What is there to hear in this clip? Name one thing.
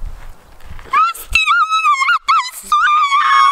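A young woman shrieks and laughs up close.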